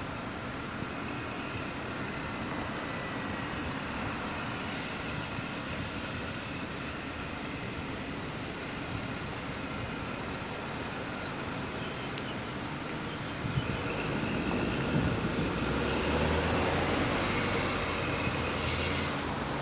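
A car engine hums steadily from inside a moving vehicle.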